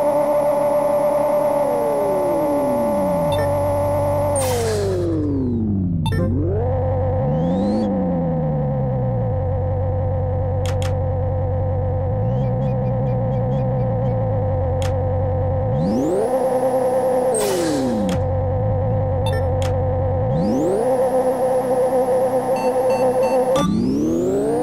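A car engine idles and revs up and down in bursts.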